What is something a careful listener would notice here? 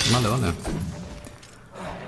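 Metal weapons strike with sharp, heavy impacts.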